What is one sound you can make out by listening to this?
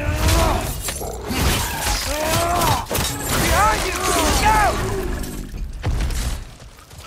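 Heavy blows thud during a fight.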